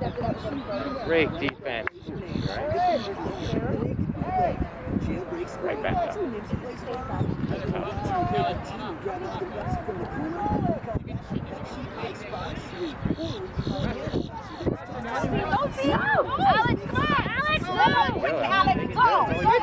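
Adult spectators close by talk and shout encouragement, getting louder and more excited toward the end.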